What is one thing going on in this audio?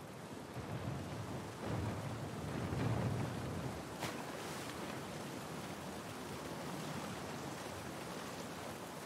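Water splashes and rushes.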